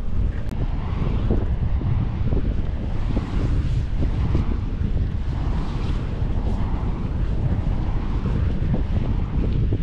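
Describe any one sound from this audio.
A tent's fabric flaps and rustles in the wind.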